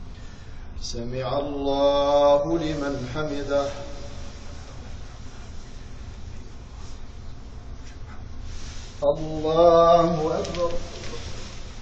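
An elderly man chants loudly through a microphone in a large echoing hall.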